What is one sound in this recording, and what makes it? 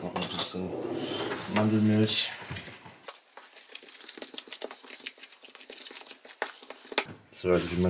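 A spoon scrapes and taps inside a plastic tub.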